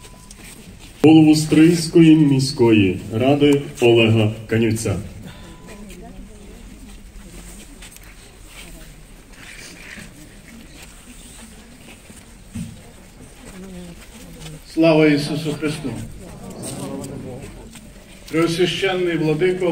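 A man speaks slowly and solemnly through a loudspeaker outdoors, in short phrases with pauses.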